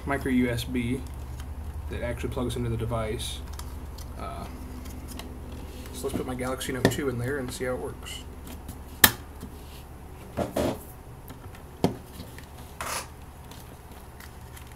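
Plastic parts click and snap as a phone holder is handled.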